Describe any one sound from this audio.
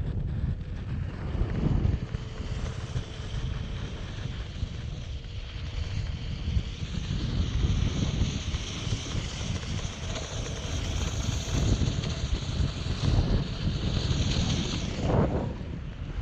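A board scrapes and hisses across wet sand.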